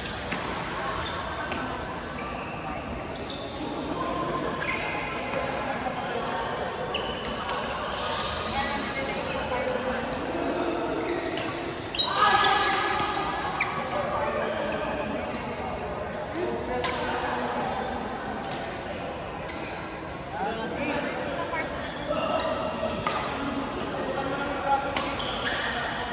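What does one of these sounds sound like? Men's voices call and talk across a large echoing hall.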